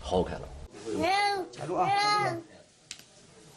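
A small child cries loudly.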